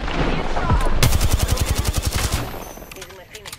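Rapid gunfire rattles in a quick burst.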